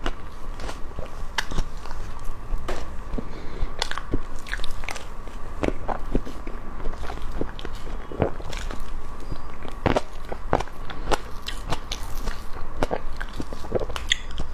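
A metal spoon scrapes through soft cream cake.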